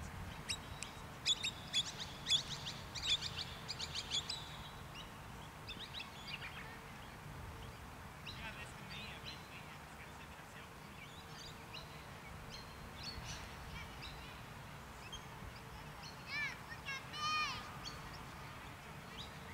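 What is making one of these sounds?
Wind rumbles steadily across an open field outdoors.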